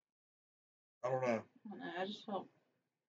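A woman speaks casually, close to a microphone.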